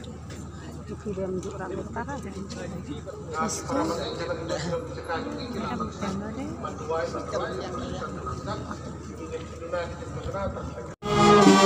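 A marching band plays music outdoors, a little distance away.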